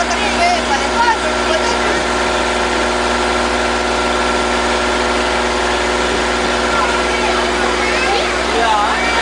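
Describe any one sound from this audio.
Water rushes and splashes against the side of a boat.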